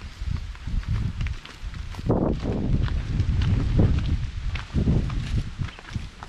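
Footsteps crunch on dirt ground.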